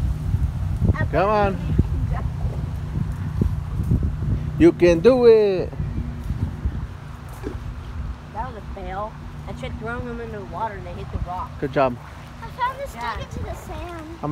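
A young girl talks and calls out excitedly close by.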